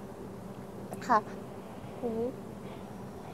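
A woman speaks briefly and quietly, close by.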